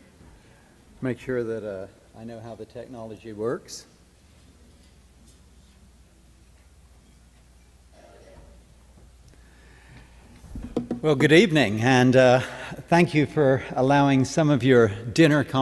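A man speaks into a microphone in a large hall, pausing between phrases.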